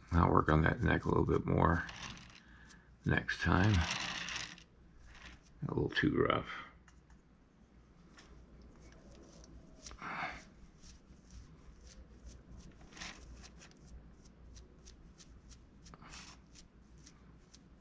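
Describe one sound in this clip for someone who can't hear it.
A brush softly scratches over clay.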